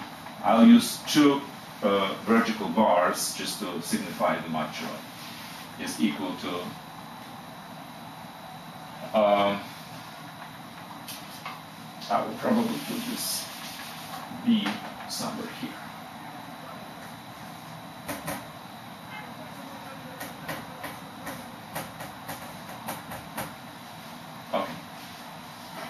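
A man explains calmly, close by.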